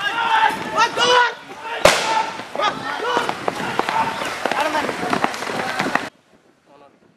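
A crowd shouts and clamours outdoors.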